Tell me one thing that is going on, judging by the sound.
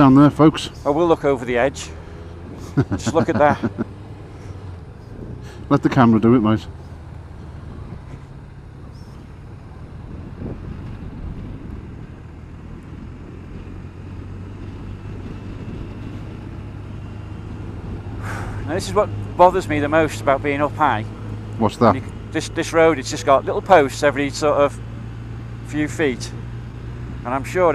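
A motorcycle engine hums steadily while riding.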